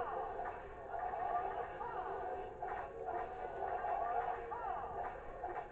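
Tinny game music plays through a television speaker.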